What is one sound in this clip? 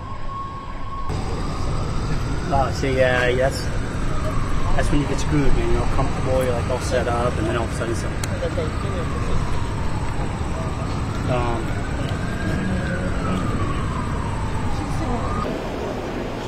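A siren wails nearby, rising and falling.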